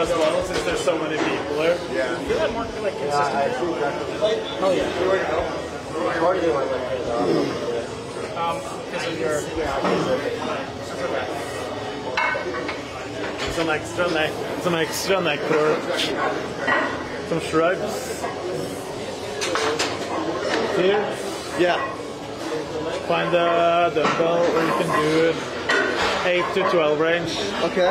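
Young men talk and laugh with animation close by, in a large echoing room.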